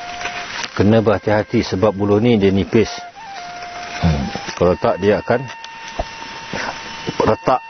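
A knife scrapes across bamboo.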